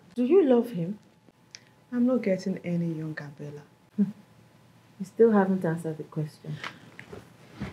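A second woman answers sternly, close by.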